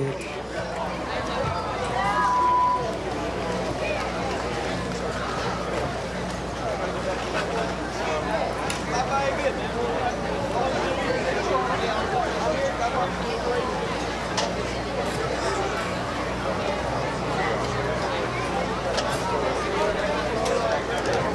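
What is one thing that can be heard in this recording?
A rock band plays live through loudspeakers outdoors.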